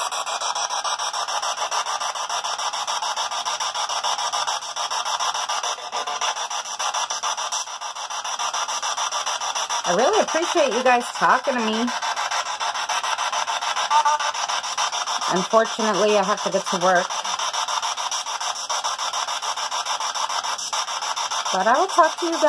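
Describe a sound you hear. A handheld radio hisses and crackles with static as it rapidly scans.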